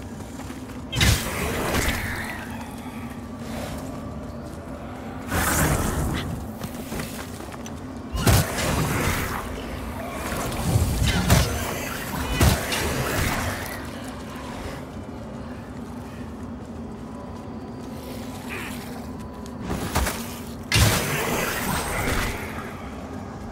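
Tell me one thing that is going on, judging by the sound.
A heavy weapon whooshes and strikes with loud thuds.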